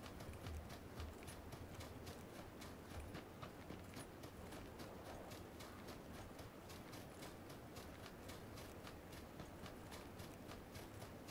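Footsteps run quickly over grass and then on a hard floor.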